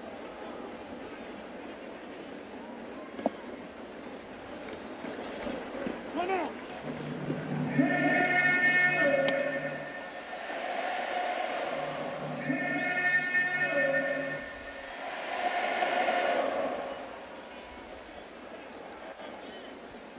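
A crowd murmurs throughout a large open stadium.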